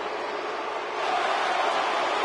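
A large crowd's cheering swells louder.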